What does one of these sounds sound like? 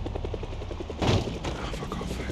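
A van crashes into a car with a heavy thud.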